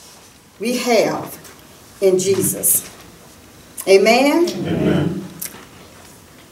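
An elderly woman speaks calmly into a microphone, in bursts with pauses.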